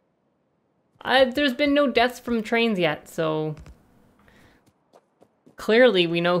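A young woman talks calmly and cheerfully into a close microphone.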